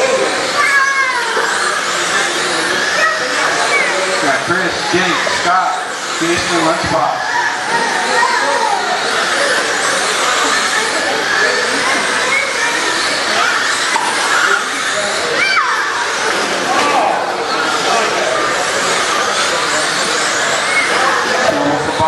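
Small electric motors whine as model cars race around a dirt track.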